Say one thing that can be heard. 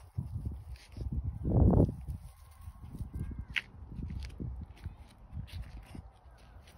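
A small dog sniffs at the grass.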